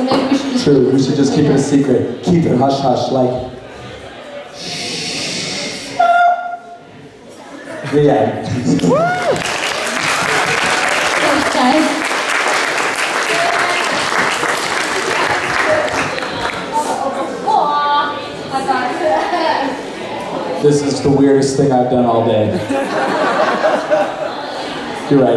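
A young man speaks with animation through a microphone over loudspeakers in a large hall.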